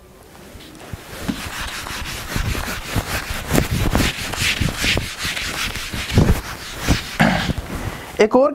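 A cloth rubs and scrapes across a whiteboard.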